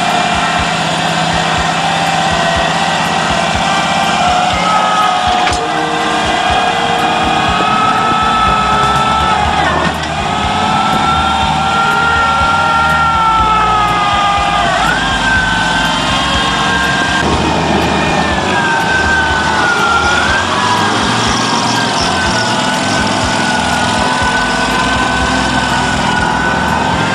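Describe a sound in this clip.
A small engine runs and revs.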